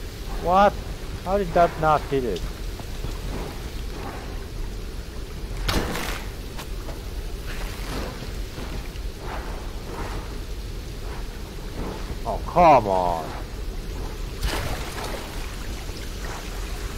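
Water rushes down a waterfall with a steady roar.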